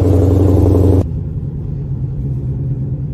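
A car engine hums more quietly from inside the moving car.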